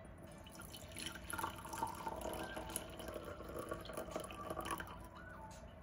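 Tea pours from a pot through a strainer and splashes into a mug.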